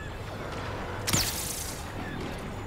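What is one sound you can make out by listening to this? A blaster fires a single sharp zapping shot.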